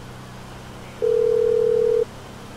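A phone call tone beeps steadily.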